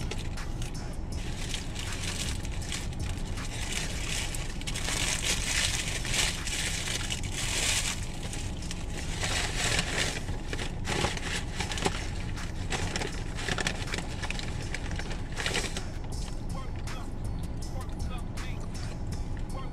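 A paper wrapper and bag crinkle and rustle close by.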